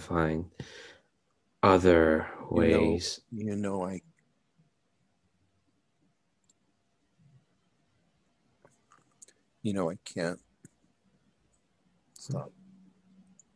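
A man speaks over an online call in short bursts, with long pauses between.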